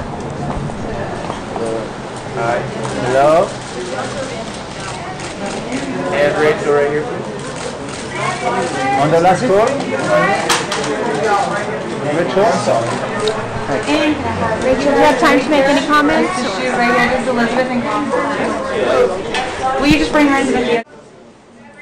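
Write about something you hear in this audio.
A crowd of men and women chatter and call out nearby.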